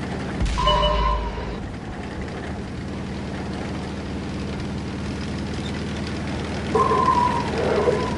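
Tank treads clank and squeak as a tank drives.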